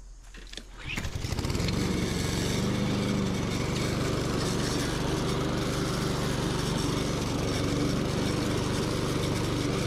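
A lawn mower engine runs loudly while mowing grass outdoors.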